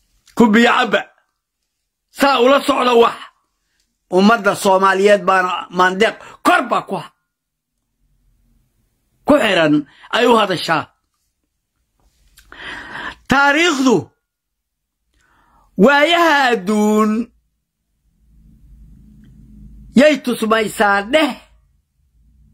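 An elderly man speaks with animation in short bursts, close to a microphone.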